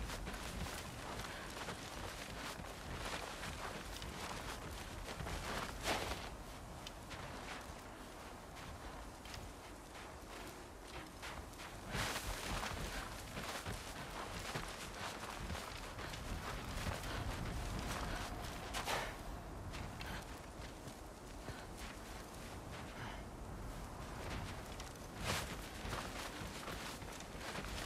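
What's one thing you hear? Footsteps crunch quickly through deep snow.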